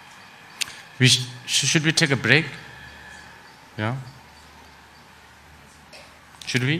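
A middle-aged man speaks calmly and cheerfully into a microphone, with pauses.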